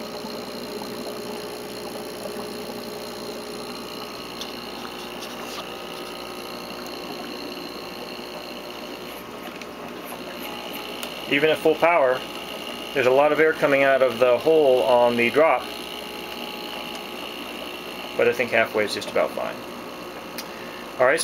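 An aquarium air pump hums steadily.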